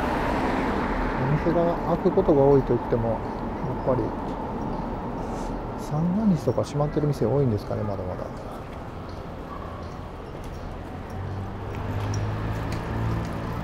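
Bicycles roll past on the road.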